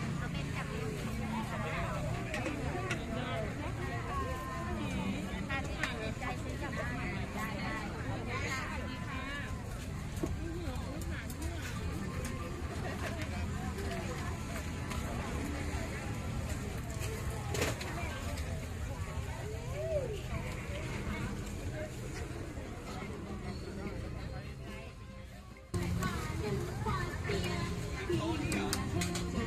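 A dense crowd chatters all around outdoors.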